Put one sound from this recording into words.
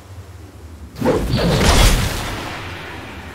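A huge beast lets out a loud, deep roar.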